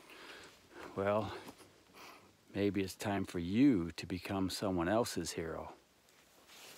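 An older man speaks calmly and close up, through a small microphone.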